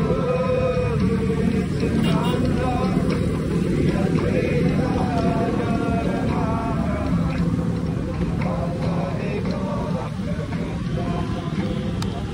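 Other motorbikes and vehicles drive by nearby.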